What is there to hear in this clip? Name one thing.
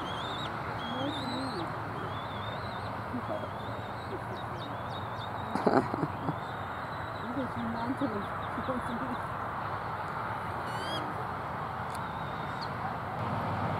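A young bald eagle gives high, thin chirping calls.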